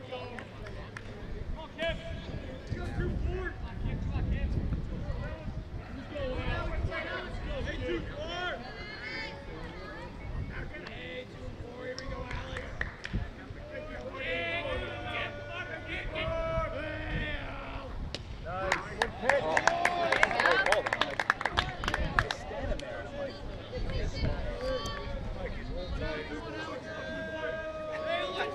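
A crowd of spectators chatters and calls out outdoors at a distance.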